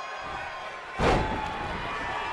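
A body slams hard onto a wrestling mat with a loud thud.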